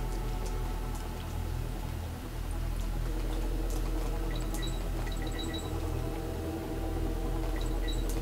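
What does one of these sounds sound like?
Video game music plays steadily.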